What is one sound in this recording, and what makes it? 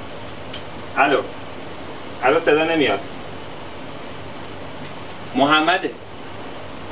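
A young man speaks loudly in short bursts through a microphone.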